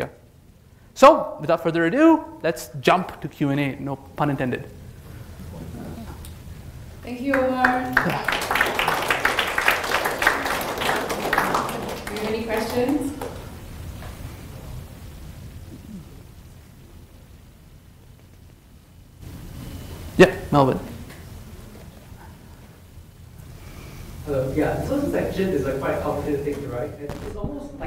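A young man speaks into a microphone in a calm, conversational way.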